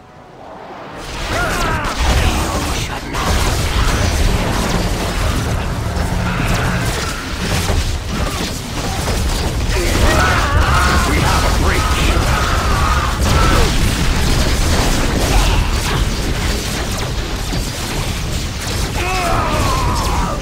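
Magic blasts whoosh and zap.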